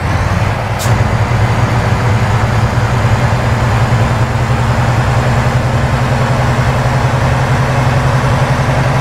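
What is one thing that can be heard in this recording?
Tyres roll along the road with a steady hum.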